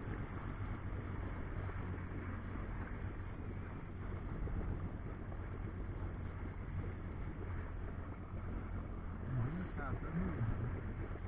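Water laps and splashes close by, outdoors in wind.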